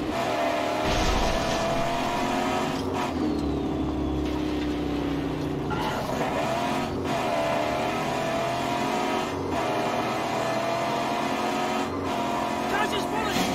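A car engine roars and revs up and down as a vehicle speeds along.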